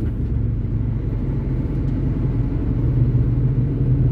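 An oncoming truck rushes past.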